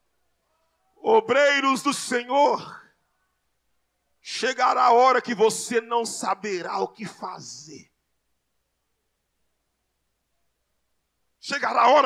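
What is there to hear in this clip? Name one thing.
A man preaches loudly and with animation into a microphone, heard through loudspeakers in a large room.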